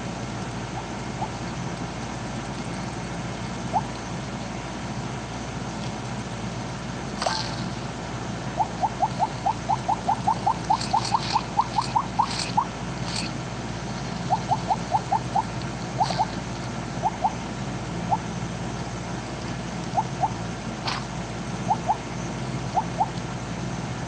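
Short bright game blips chime in quick runs as food is eaten.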